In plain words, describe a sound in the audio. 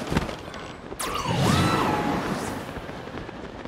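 A glider snaps open with a sharp whoosh.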